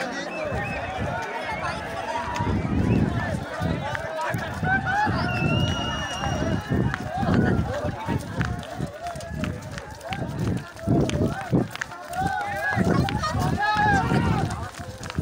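A crowd of people talk and shout loudly close by.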